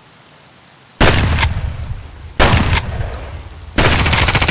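A pump-action shotgun fires three loud blasts.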